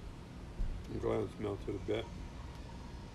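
An elderly man speaks briefly and calmly, close by.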